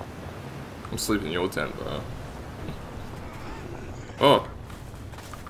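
A man talks through a microphone in short bursts.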